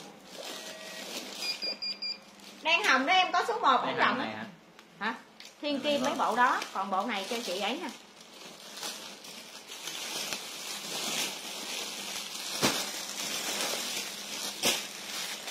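Fabric rustles as clothes are pulled on and off.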